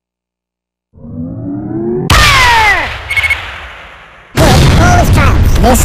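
A rocket whistles through the air.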